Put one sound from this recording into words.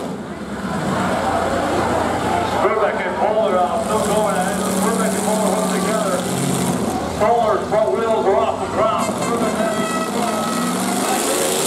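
A crowd cheers and shouts.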